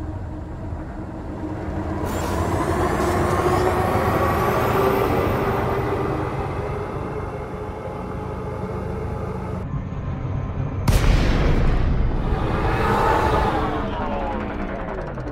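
A spaceship engine hums and roars steadily.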